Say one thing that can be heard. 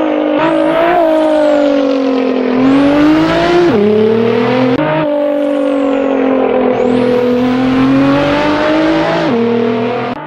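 A twin-turbo V6 sports car engine revs hard, shifting up through the gears.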